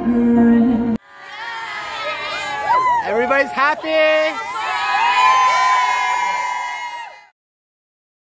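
A group of young women cheer and scream excitedly close by.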